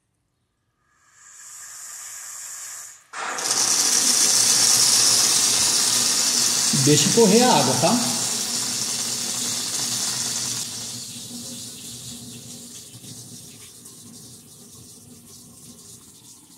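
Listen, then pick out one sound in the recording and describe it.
Water hisses and splashes steadily from a tap into a sink.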